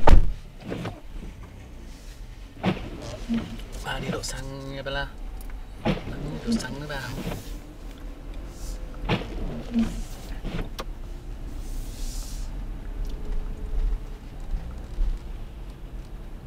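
Tyres crunch over snow.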